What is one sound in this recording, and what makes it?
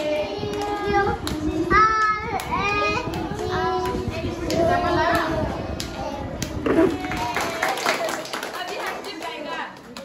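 A woman speaks gently, close by, to a small child.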